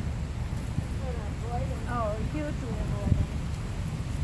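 A dog whines briefly in a high voice.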